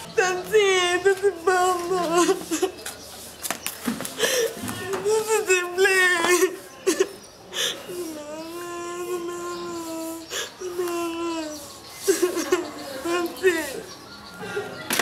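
A young woman wails and sobs loudly nearby.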